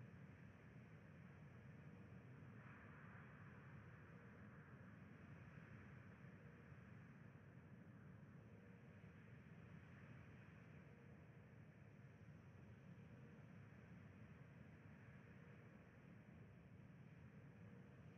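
Water rushes along a ship's hull.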